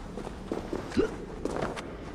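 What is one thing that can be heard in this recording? Someone lands heavily with a thud.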